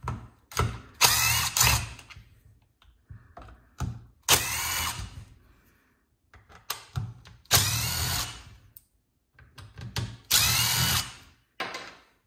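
A cordless impact driver whirs in short bursts.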